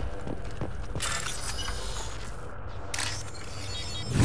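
A computer console beeps and chirps.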